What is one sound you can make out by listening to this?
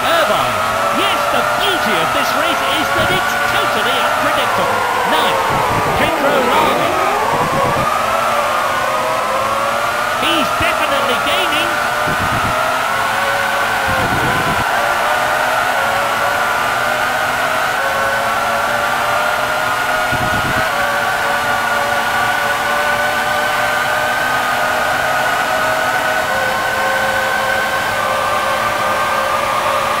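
A racing car engine whines at high revs.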